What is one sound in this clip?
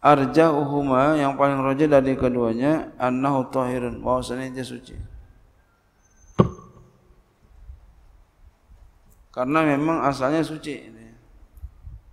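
A man chants in a melodic voice through a microphone, in a reverberant room.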